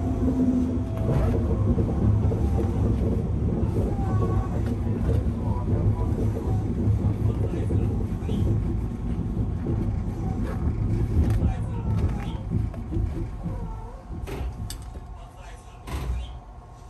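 An electric train motor whines, its pitch sliding down.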